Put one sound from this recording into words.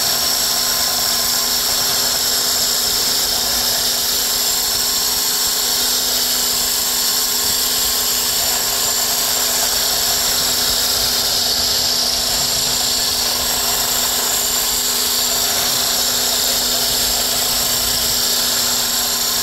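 An electric hand blender with a whisk attachment whirs as it whisks pancake batter in a plastic bowl.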